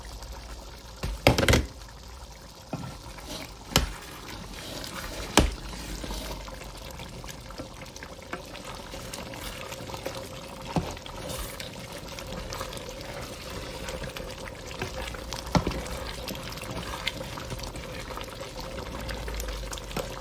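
A thick stew bubbles and simmers in a pot.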